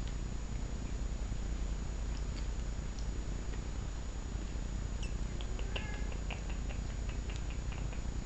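A cat bats and paws at a dangling toy with soft rustles.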